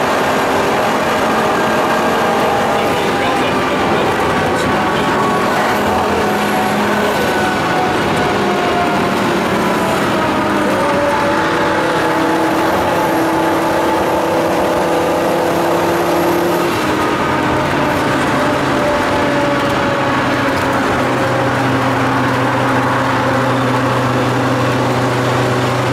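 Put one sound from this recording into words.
Tyres hum and rush over the road.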